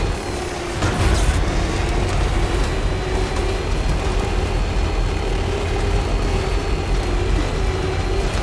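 Tyres roll and crunch over rough ground.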